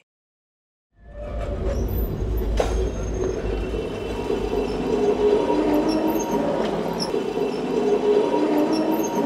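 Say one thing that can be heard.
A tram rumbles along its tracks.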